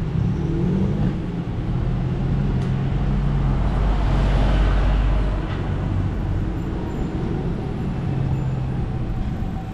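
A van engine idles close by with a low, steady rumble.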